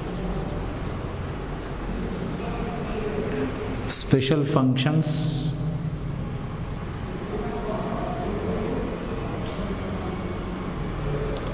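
A man speaks calmly, like a teacher explaining.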